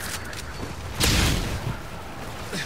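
Explosions from a video game boom.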